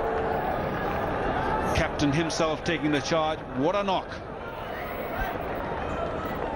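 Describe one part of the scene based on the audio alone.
A large crowd cheers and murmurs in an open stadium.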